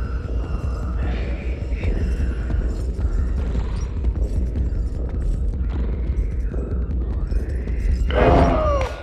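Small quick footsteps patter on a wooden floor.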